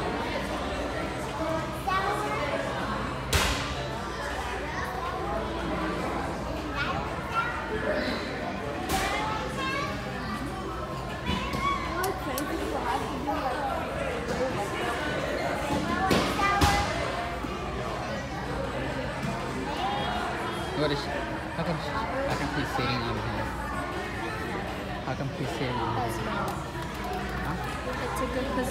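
Children chatter and call out in the background.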